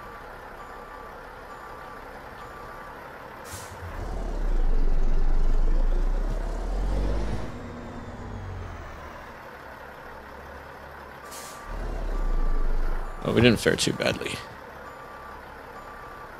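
A truck engine idles with a low, steady rumble, swelling louder at times.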